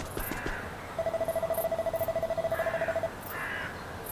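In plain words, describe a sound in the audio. A text box beeps as words scroll out.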